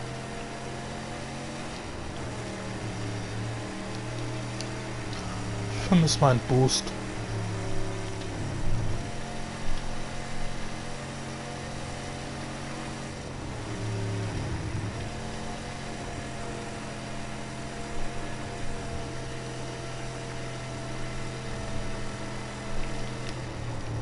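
A car engine roars steadily, shifting gears as it speeds up.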